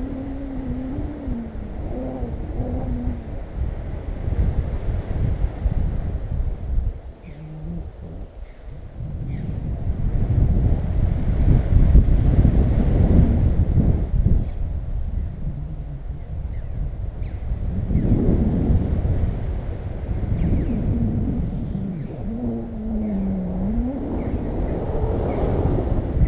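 Wind rushes and buffets over the microphone in open air.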